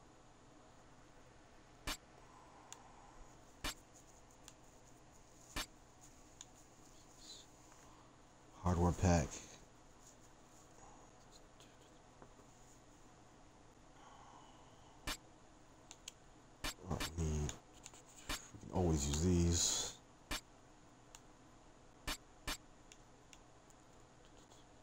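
Short electronic menu clicks sound as a selection moves.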